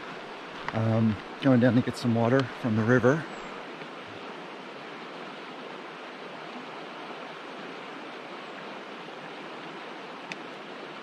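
A river flows and rushes steadily over rocks.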